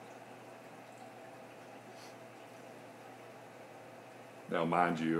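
Water trickles softly in a tank.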